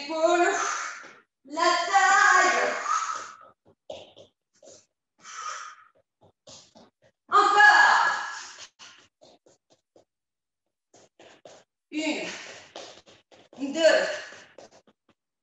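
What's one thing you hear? A young woman talks with animation, breathless, close to a microphone.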